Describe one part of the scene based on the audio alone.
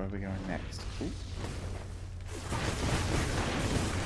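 Fiery blasts burst and roar.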